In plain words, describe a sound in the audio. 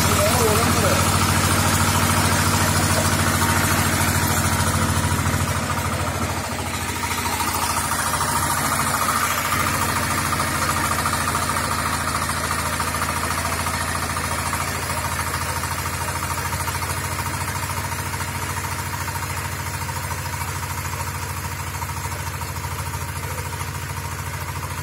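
Rotating tiller blades churn through loose soil.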